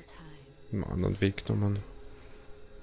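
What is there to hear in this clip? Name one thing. A man speaks briefly and with animation into a close microphone.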